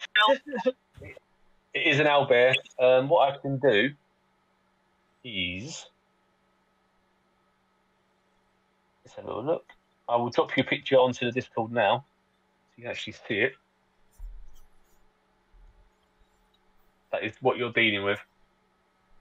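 A man talks with animation over an online call, in short bursts.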